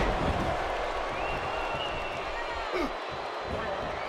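A wrestler slaps and punches an opponent.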